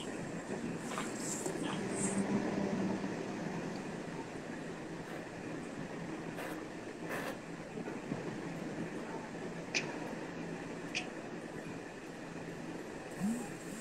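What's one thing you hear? A young woman talks and laughs over an online call.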